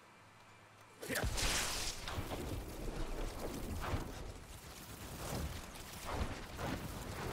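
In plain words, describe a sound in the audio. Electric lightning spells crackle and zap in short bursts.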